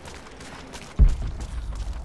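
A heavy thump lands on the ground.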